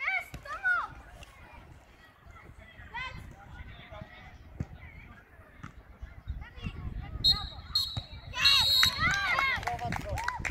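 Children shout and call out loudly across an open field outdoors.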